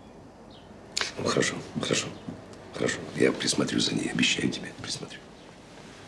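A middle-aged man speaks calmly and reassuringly, close by.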